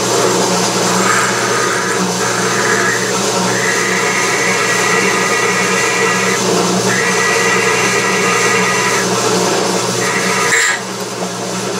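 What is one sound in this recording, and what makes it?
A drill bit squeals as it cuts into metal.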